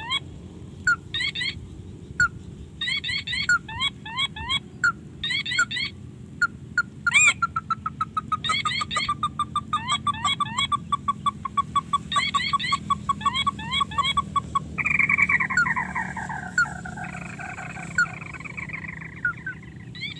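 Water trickles gently along a narrow ditch.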